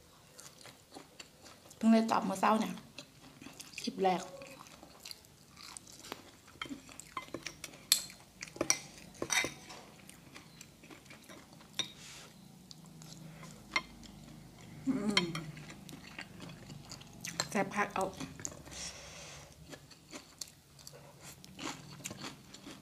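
A young woman chews and smacks her lips loudly.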